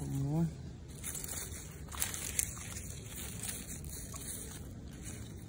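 Leaves rustle softly as they are brushed aside.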